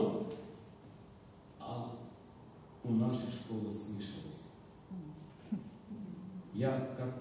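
An elderly man sings into a microphone.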